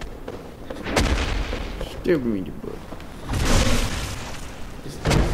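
A weapon strikes with a loud crash.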